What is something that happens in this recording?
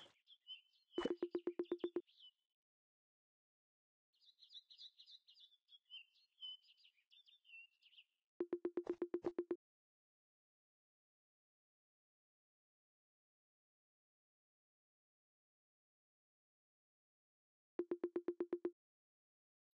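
A cartoon character babbles in short, rapid chirping bursts.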